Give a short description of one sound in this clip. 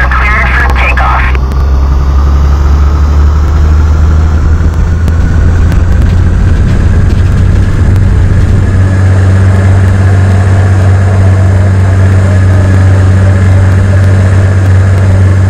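Propeller engines drone loudly and steadily, rising as the plane speeds up.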